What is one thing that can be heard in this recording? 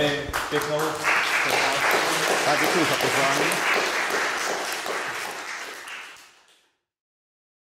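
An audience applauds and the clapping fades away.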